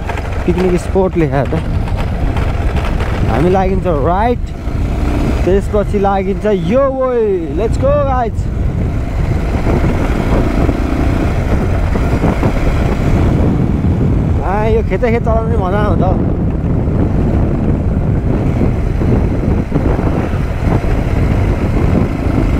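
Wind rushes past the microphone while riding.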